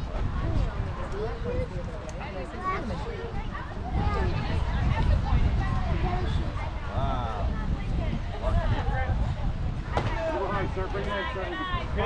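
Young players shout and chatter across an open field.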